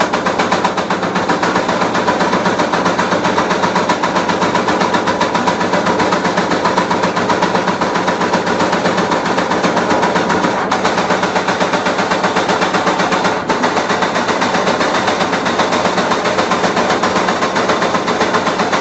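A machine punches metal with rapid, steady, rhythmic thuds.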